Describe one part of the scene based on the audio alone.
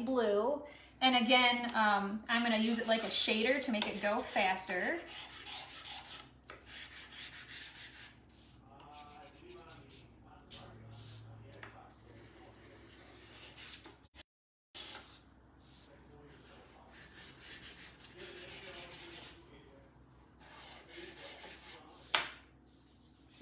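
A pastel stick scratches and rubs on paper.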